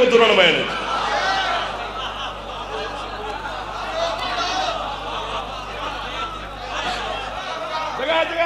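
A crowd of men chant loudly together in a large echoing hall.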